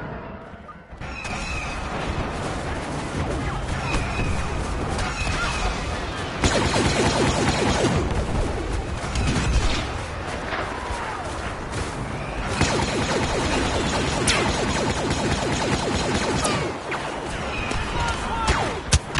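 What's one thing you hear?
Blaster rifles fire in rapid bursts.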